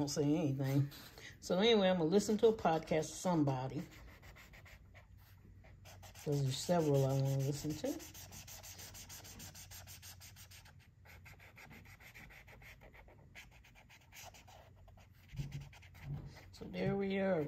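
A felt marker scratches softly across paper.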